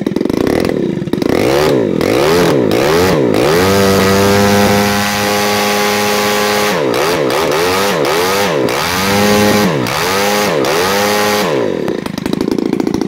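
A small petrol engine revs up and down repeatedly.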